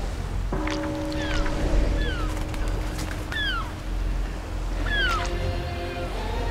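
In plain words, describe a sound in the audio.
Gulls cry.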